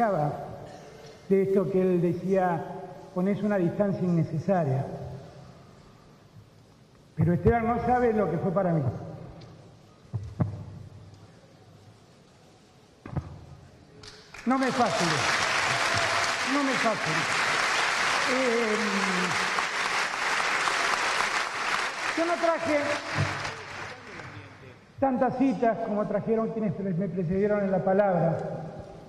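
A middle-aged man speaks through a microphone, in a slow, measured way, in a large echoing hall.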